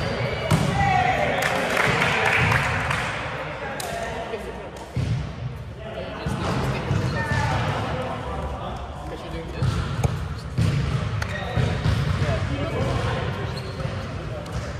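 A volleyball smacks against hands.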